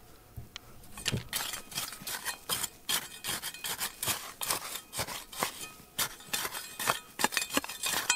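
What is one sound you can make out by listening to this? A metal trowel scrapes and digs into dry, stony soil.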